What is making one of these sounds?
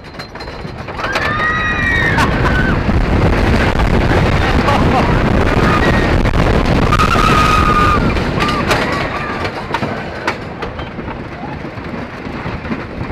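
A roller coaster train roars and rattles down a wooden track.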